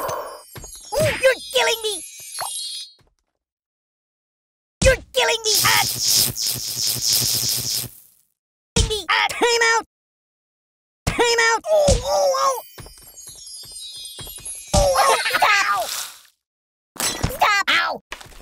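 A soft toy doll thumps as it is knocked about.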